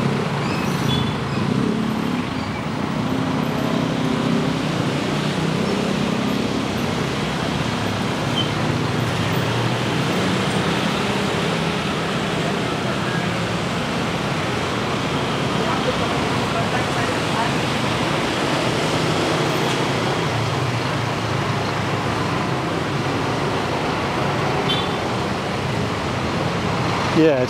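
Scooters ride past with buzzing engines.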